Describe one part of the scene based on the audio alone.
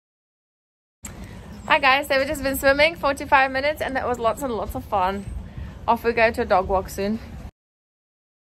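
A young woman talks cheerfully and close up.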